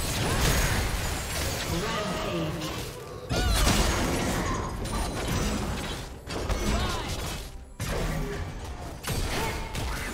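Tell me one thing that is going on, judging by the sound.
Swords clash and strike repeatedly.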